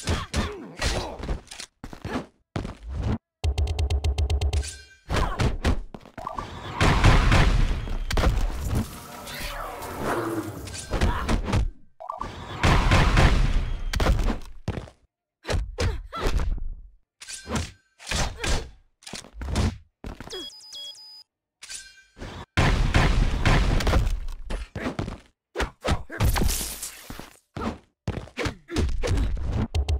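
Punches and kicks land with heavy thuds in a video game fight.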